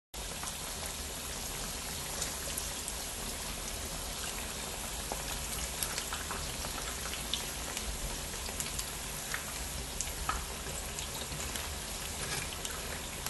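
Oil sizzles and crackles steadily as fritters fry.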